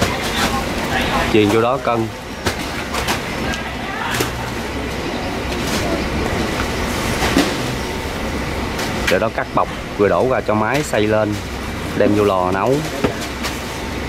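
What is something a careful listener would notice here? Men talk loudly nearby.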